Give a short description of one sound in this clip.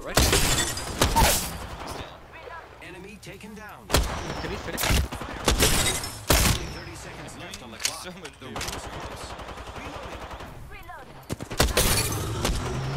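Sniper rifle shots crack loudly, each followed by a ringing echo.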